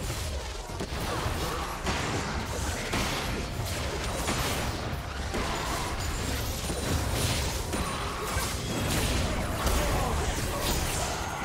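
Video game spells blast and crackle in a busy battle.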